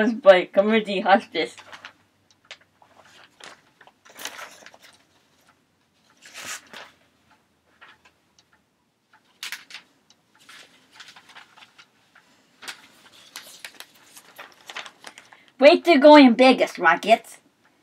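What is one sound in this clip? Paper rustles as a newspaper is handled.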